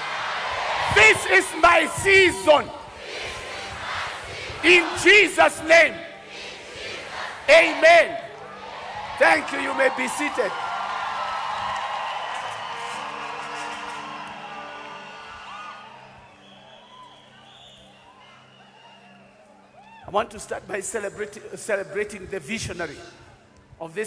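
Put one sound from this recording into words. A man preaches with animation through a microphone.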